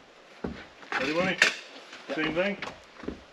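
A man talks casually nearby outdoors.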